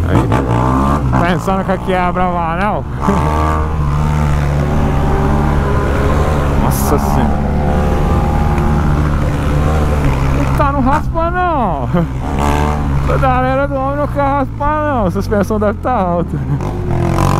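A motorcycle engine revs up and down as gears change.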